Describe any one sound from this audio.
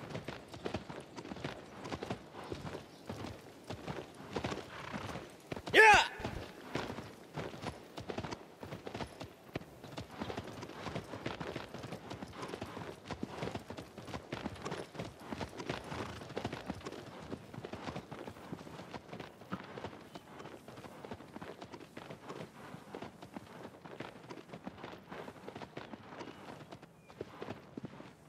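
Horse hooves thud quickly on grass at a gallop.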